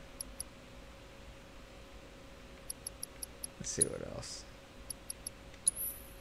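Short electronic menu blips sound one after another.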